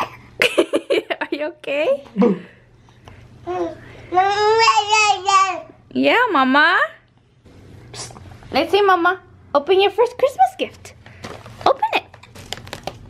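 A toddler babbles and squeals up close.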